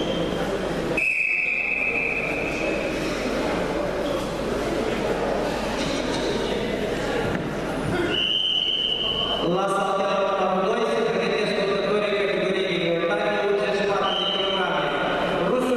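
A referee blows a whistle in short, shrill blasts.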